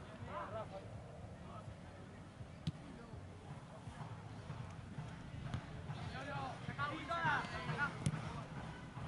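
Young men shout to each other outdoors, heard from a distance.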